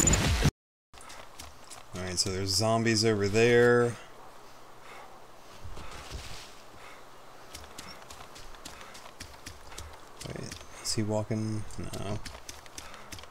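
Footsteps tread through grass.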